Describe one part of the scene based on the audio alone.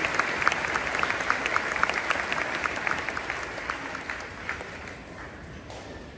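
An audience claps, and the applause fades away in a large echoing hall.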